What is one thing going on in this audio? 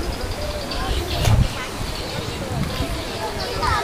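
Choppy floodwater splashes and churns.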